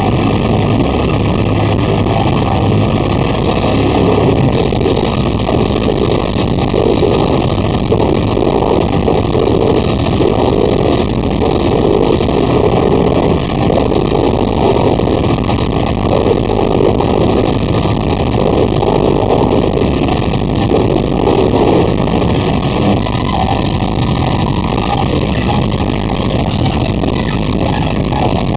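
Distorted electric guitars play fast riffs.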